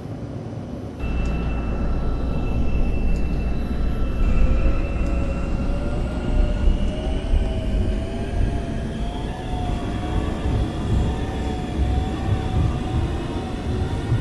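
A train's electric motors hum and whine, rising in pitch as the train speeds up.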